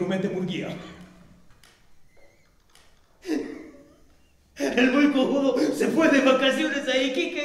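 An actor speaks with animation, heard from a distance in an echoing hall.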